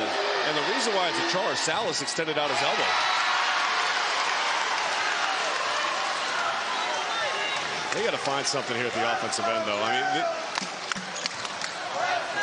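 A large indoor crowd murmurs and cheers throughout.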